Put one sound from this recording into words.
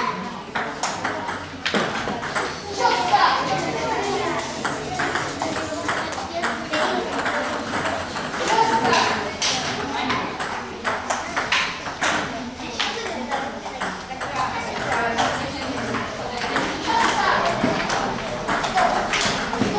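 Ping-pong balls click on tables and paddles in a large echoing hall.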